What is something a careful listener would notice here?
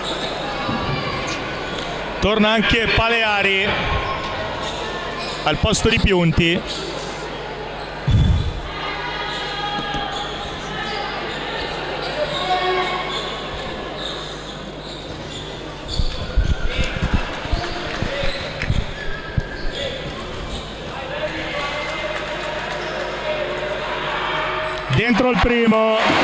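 Spectators talk and call out in a large echoing hall.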